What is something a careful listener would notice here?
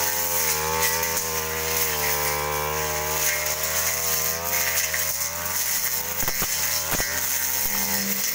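A brush cutter engine whines steadily close by, its pitch wavering a little.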